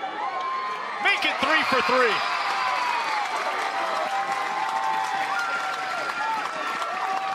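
A crowd cheers and shouts loudly.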